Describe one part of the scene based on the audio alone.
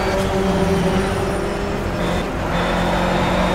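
A four-cylinder racing car engine drops in revs as the car brakes for a corner.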